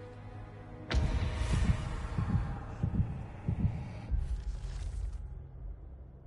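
Heavy footsteps crunch on snow.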